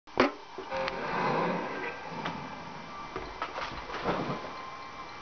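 Rock music with guitars and drums plays through a television speaker.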